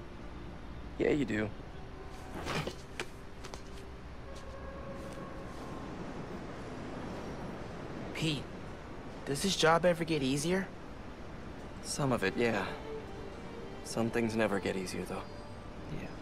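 A man answers in a low, calm voice, close by.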